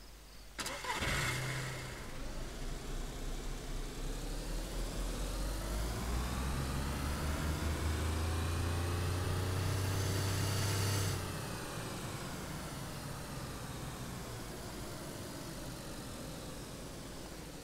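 A car engine starts and revs up as the car speeds up, then eases off.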